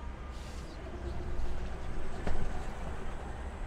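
A double-decker bus drives past close by.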